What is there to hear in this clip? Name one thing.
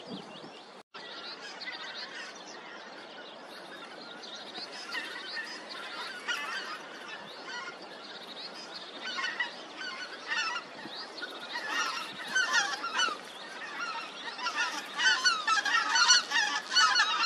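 A flock of geese honks overhead, growing louder.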